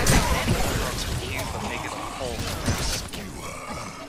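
Magical blasts crackle and whoosh in bursts.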